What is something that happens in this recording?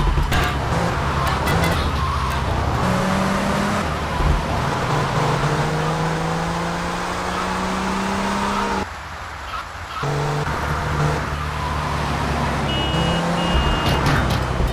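A sports car engine revs up as it accelerates through the gears.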